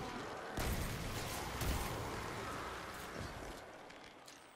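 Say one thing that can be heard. An explosion booms and crackles loudly.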